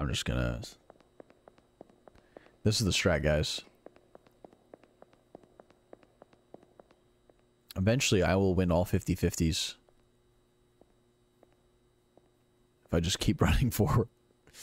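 A young man talks animatedly into a close microphone, in short bursts.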